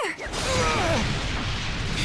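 Rocks burst and crash to the ground.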